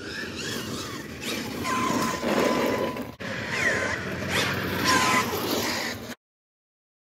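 A small electric motor whines as a toy car speeds closer.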